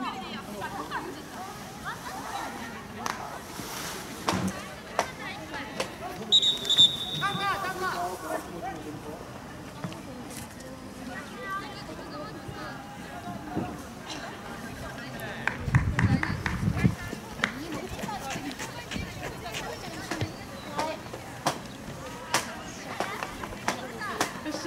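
Young players shout and call out across an open field outdoors.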